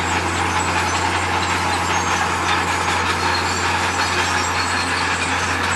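A truck engine idles with a steady low hum.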